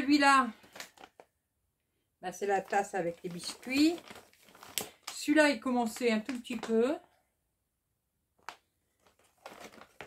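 Plastic packets rustle and rattle against each other.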